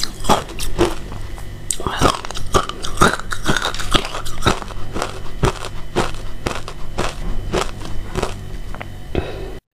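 A young woman chews crunchy ice close to a microphone.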